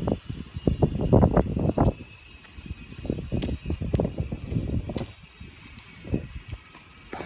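A man's footsteps run on hard pavement, coming closer.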